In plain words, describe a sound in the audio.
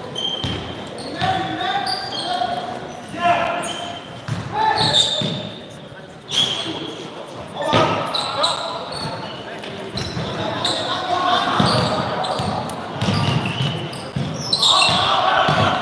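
A crowd of young people chatters and shouts in a large echoing hall.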